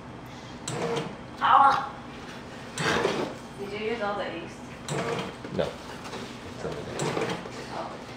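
A plastic step stool knocks and scrapes on a wooden floor.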